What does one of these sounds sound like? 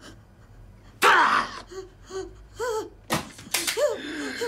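A young woman cries out and gasps in pain.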